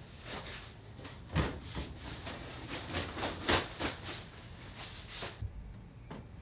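Clothes rustle as they are pushed into a washing machine drum.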